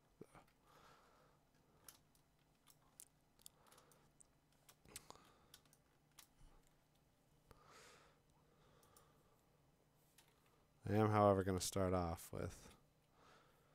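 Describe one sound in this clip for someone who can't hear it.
A computer mouse clicks softly.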